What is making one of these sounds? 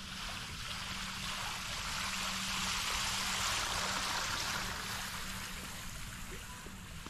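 A small fountain splashes into a stone basin.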